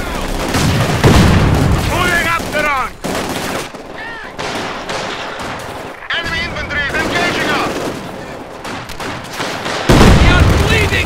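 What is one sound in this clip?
A heavy explosion booms.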